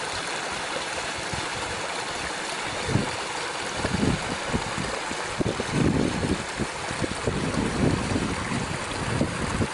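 A small stream trickles and babbles over stones.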